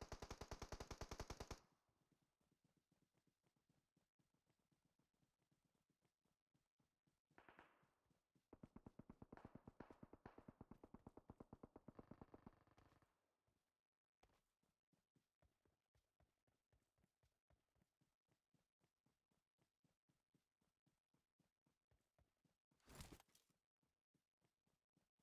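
Footsteps run quickly and steadily over grass and ground.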